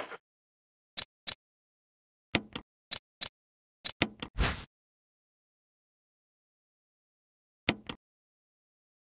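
Short electronic menu clicks sound several times.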